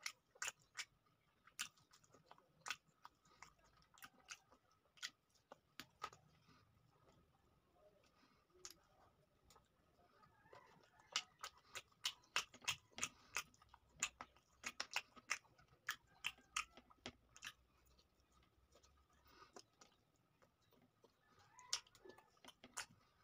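A man chews food loudly and smacks his lips close to a microphone.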